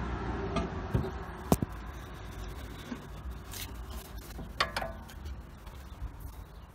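A ratchet wrench clicks and clinks against metal.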